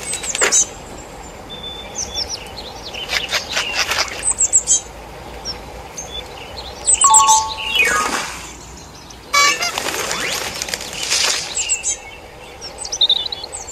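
Skateboard wheels roll steadily along a road.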